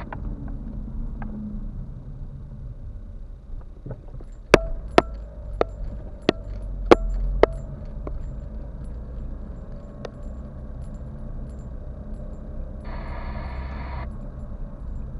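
Tyres roll over a paved road.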